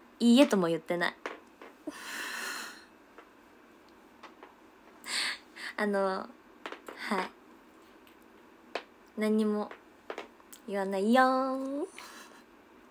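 A young woman speaks brightly and playfully close to a microphone.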